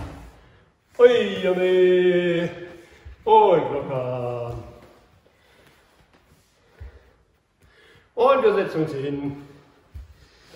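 A middle-aged man speaks calmly and loudly nearby.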